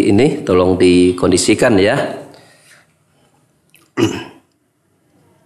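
A man speaks calmly and slowly into a microphone.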